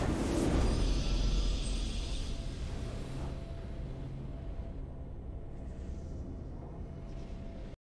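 A triumphant fanfare plays softly.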